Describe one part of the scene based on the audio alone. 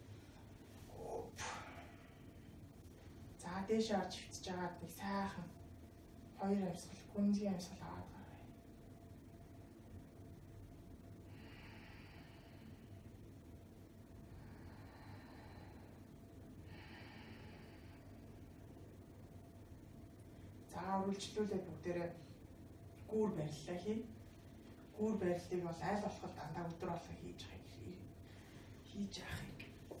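A woman speaks calmly and slowly, close by.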